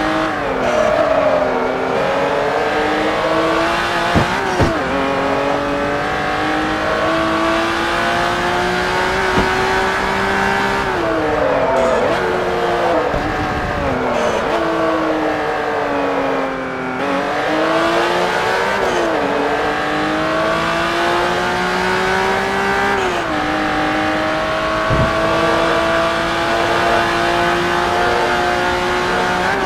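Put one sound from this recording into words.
A race car engine roars loudly, revving up and dropping as gears shift.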